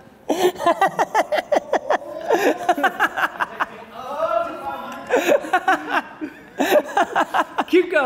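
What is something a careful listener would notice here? A young man laughs loudly and uncontrollably close by.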